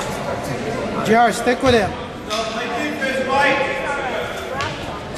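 Men shout and call out across the court.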